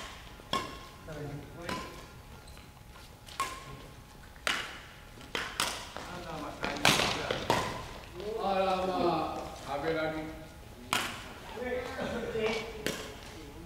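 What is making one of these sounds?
Shuttlecocks are struck sharply with rackets, echoing in a large hall.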